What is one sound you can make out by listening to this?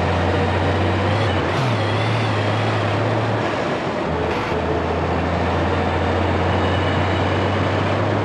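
A truck engine drones steadily as it drives.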